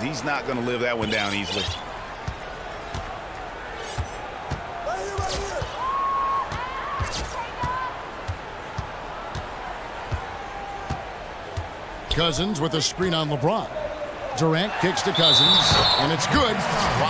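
A basketball bounces on a hardwood floor in quick, steady dribbles.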